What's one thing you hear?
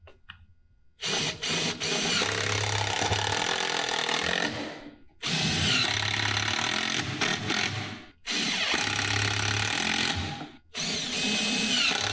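An impact driver whirs and hammers as it drives screws into wood, in bursts.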